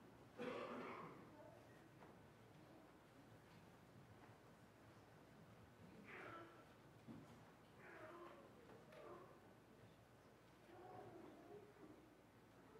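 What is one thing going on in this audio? Men and women chat quietly at a distance in a large echoing hall.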